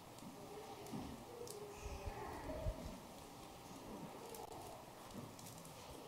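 A priest's footsteps sound softly on the floor.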